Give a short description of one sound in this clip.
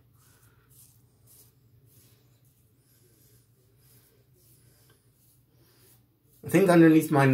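A razor scrapes across stubble close by.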